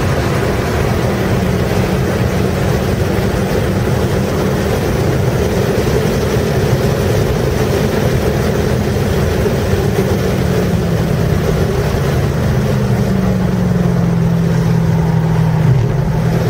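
Wind and road noise rush steadily past the car.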